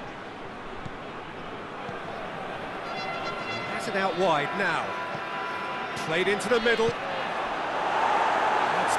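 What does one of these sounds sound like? A large stadium crowd roars steadily, swelling near the end.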